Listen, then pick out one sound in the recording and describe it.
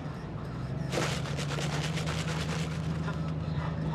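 Ice rattles in a shaken cup.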